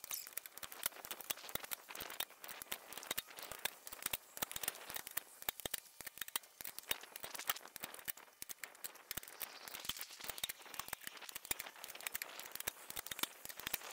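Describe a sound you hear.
A metal jack handle ratchets with quick, light clicks.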